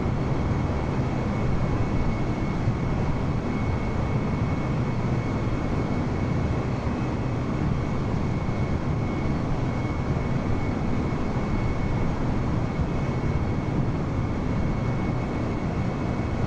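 Jet engines roar steadily as an airliner flies.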